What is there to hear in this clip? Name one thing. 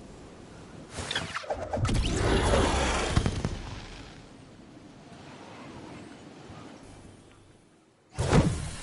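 Wind rushes loudly past during a fall through the air, then eases off.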